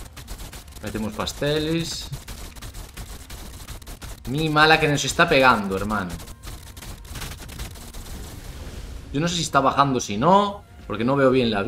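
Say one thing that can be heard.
A young man talks casually and with animation close to a microphone.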